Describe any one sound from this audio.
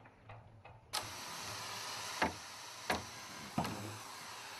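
A hammer drives a wooden peg into planks.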